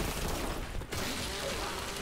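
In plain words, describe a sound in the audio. A chainsaw revs and grinds.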